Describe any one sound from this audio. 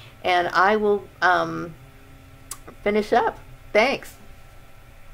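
A woman speaks close by, warmly and with animation.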